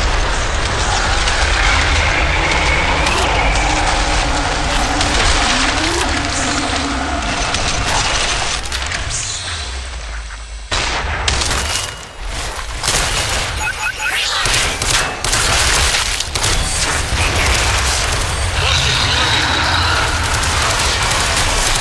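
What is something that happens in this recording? Creatures shriek and growl.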